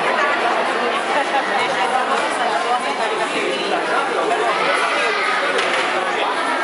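Many children and adults chatter together in a large echoing hall.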